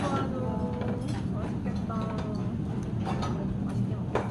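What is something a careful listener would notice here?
Metal tongs clink against the grill.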